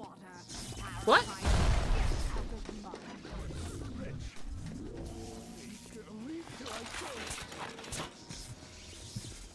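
A young woman talks into a microphone.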